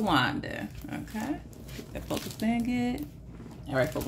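A plastic sleeve crinkles as it is handled.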